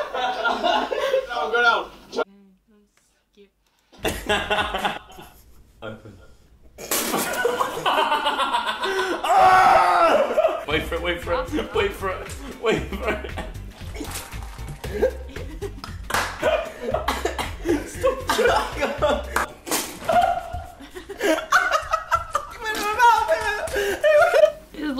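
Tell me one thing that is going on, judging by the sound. A young woman laughs softly close by.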